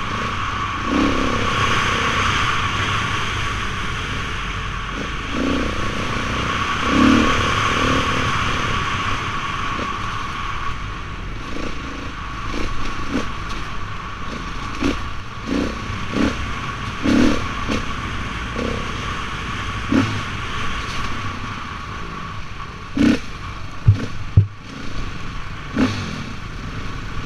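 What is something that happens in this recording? An engine hums steadily close by.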